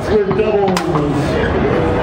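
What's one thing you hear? Foosball rods and a ball clack against a table.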